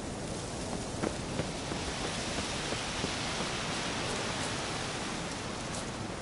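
Footsteps crunch on the leafy forest floor.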